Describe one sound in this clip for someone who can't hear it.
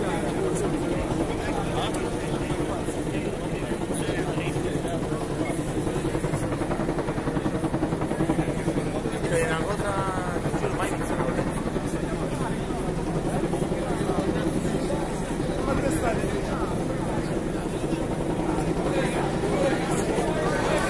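A large crowd of men talks and shouts at once outdoors.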